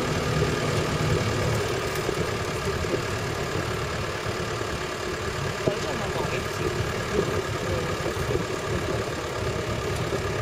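An open vehicle's engine rumbles steadily as it drives along.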